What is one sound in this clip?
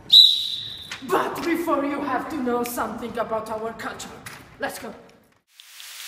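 Two young women talk and laugh excitedly.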